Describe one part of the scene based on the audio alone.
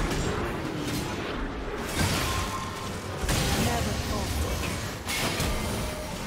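Magic spells whoosh and burst with sharp blasts in a hectic fight.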